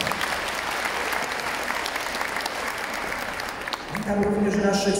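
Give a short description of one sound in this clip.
A crowd applauds in a large echoing hall.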